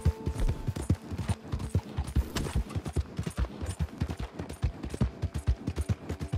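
Horse hooves gallop heavily over soft ground.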